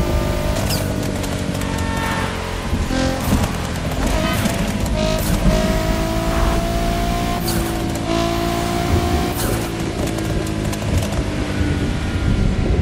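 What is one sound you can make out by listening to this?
A sports car engine roars steadily at high speed.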